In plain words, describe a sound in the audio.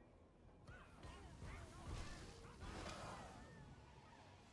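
A fiery explosion booms and crackles.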